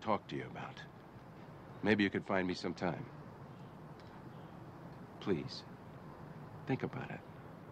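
An elderly man speaks calmly and firmly nearby, in short phrases.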